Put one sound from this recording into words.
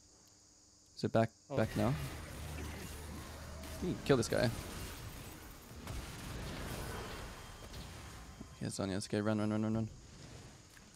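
Spell effects whoosh and crackle during a fight.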